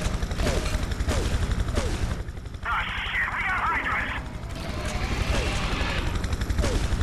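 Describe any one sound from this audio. A helicopter rotor thumps steadily and fast.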